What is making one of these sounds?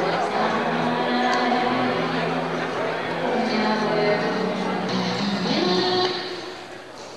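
A crowd murmurs in an echoing hall.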